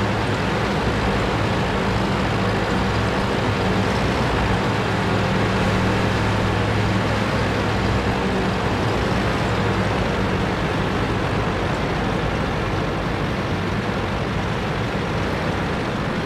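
Tank tracks clatter and grind over the ground.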